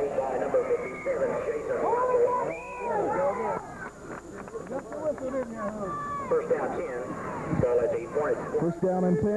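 A crowd of spectators talks and calls out nearby.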